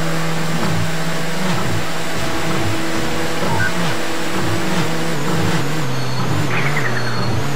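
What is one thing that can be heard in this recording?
A racing car engine roars steadily at high speed, its pitch dipping briefly now and then.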